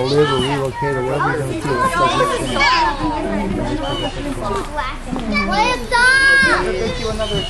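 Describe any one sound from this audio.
A young woman speaks brightly and close by.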